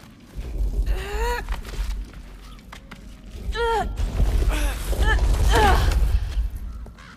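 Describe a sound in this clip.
A young man speaks urgently nearby.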